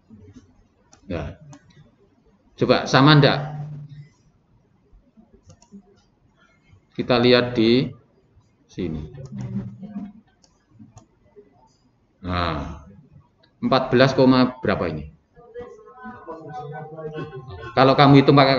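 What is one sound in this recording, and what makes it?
A young man speaks calmly into a nearby microphone, in short bursts with pauses.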